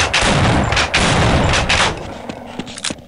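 An explosion booms and rumbles through echoing concrete corridors.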